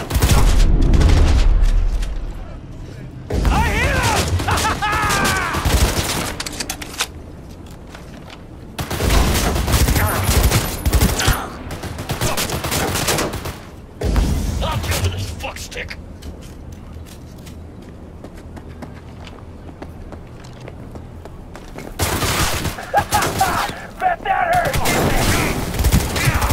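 Guns fire in rapid bursts close by.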